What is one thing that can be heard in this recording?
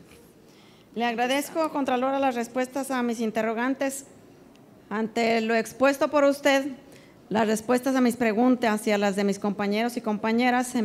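A woman speaks calmly into a microphone over a loudspeaker in an echoing hall.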